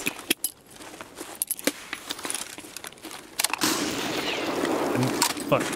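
A rifle magazine clicks and metal parts clack during reloading.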